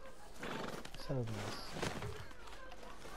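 A horse whinnies nearby.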